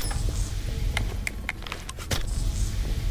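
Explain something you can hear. A rifle's metal parts click and rattle as it is readied.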